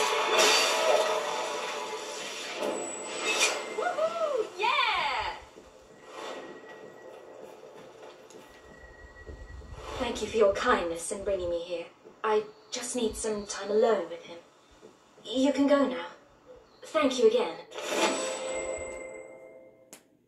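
Video game music and sound effects play through a television loudspeaker.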